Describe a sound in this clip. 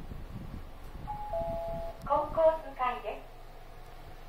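An elevator chimes with a few bright tones.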